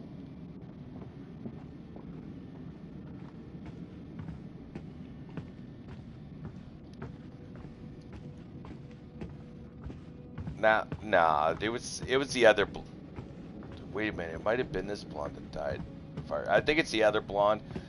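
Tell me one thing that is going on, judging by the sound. Footsteps creak slowly across a wooden floor.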